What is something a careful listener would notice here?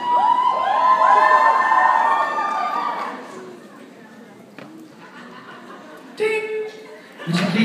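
A man speaks into a microphone through loudspeakers in a large echoing hall.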